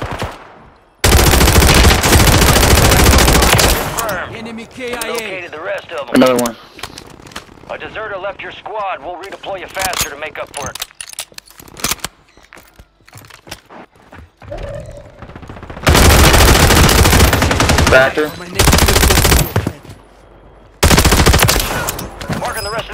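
Automatic gunfire rattles in rapid loud bursts.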